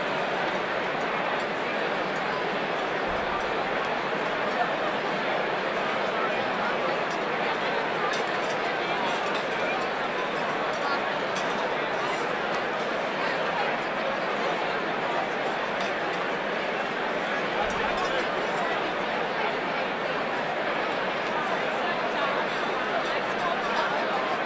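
A large crowd chatters and murmurs steadily in a big echoing hall.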